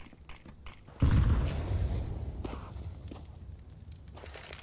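Rifle shots ring out up close.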